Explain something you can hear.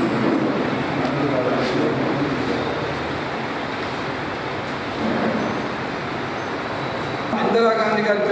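A crowd of men murmurs and chatters in a room.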